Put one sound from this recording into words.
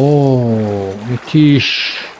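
Water splashes as someone wades in.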